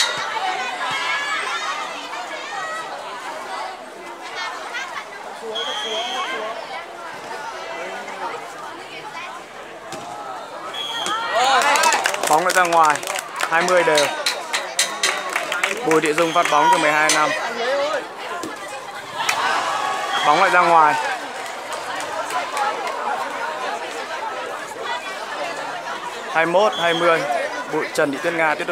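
A crowd of teenage girls cheers and shouts nearby, outdoors.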